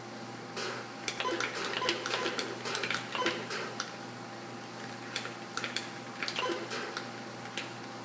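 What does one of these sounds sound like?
Atari 2600 laser shots zap through a television speaker.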